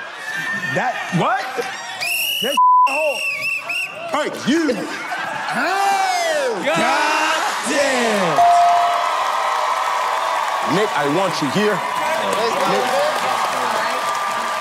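A man shouts with excitement into a microphone.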